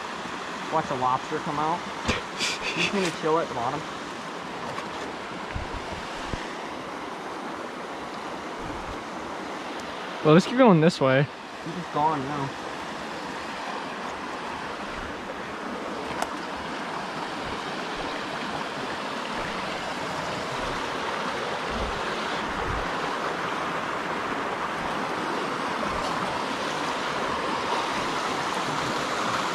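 A shallow stream babbles over rocks, growing louder.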